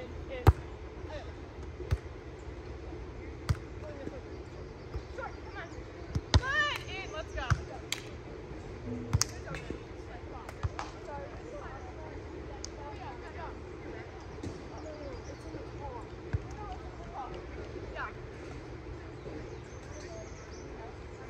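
Young women call out to each other outdoors.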